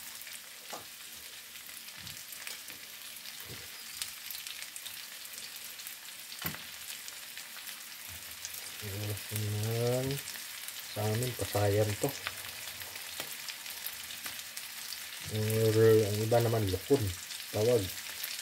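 Shrimp sizzle softly in a hot pan.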